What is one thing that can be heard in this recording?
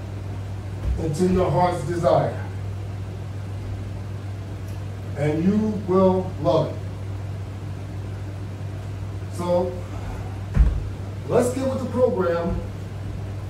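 A man talks calmly in short phrases nearby.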